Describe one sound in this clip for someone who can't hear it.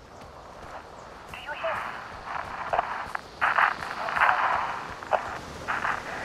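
Footsteps crunch through grass and over rock.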